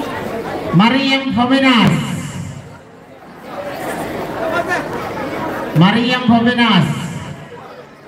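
A man chants loudly over a loudspeaker.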